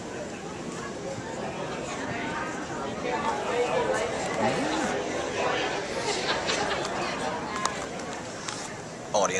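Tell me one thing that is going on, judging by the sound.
A crowd of men and women chatters in a large, echoing hall.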